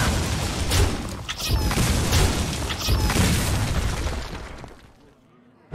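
Game sound effects crash and burst as cards attack and break apart.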